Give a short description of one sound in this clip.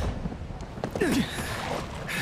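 Boots thud onto stony ground.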